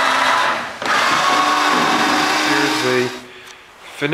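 An electric drill whirs loudly.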